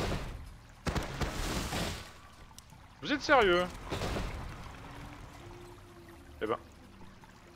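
A man talks quietly.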